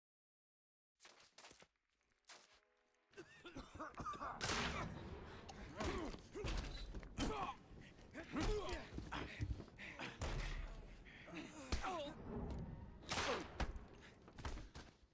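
Heavy blows and thuds land during a fight.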